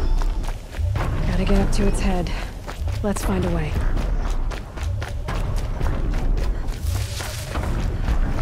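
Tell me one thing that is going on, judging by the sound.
Quick footsteps crunch on soft sand.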